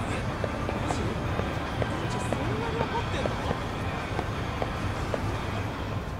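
Footsteps walk on paved ground.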